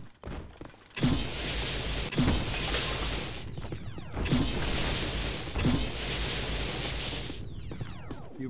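An energy beam crackles and roars loudly in bursts.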